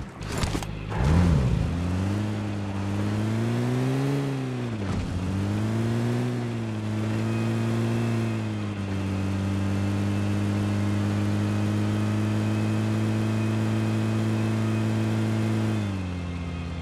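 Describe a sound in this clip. A car engine starts and hums steadily, revving up and down as the car drives.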